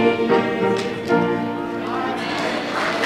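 Young children sing together in an echoing hall.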